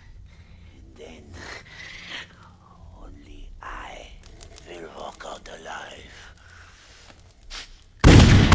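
A man speaks in a low, sly voice.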